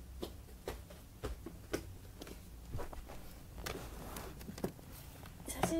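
Hands tap and rustle close by.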